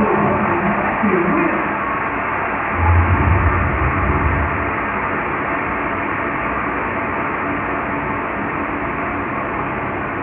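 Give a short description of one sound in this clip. A large stadium crowd murmurs.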